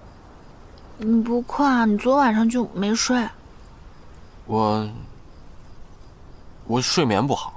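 A young man speaks calmly and softly close by.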